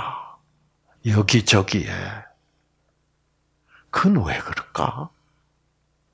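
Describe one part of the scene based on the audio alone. An elderly man speaks with animation, heard through a microphone.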